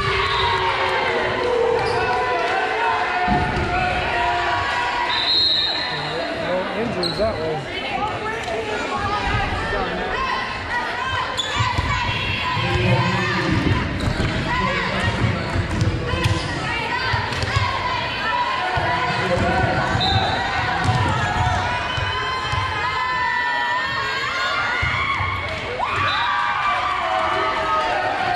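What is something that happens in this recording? Young women chatter and call out across a large echoing gym.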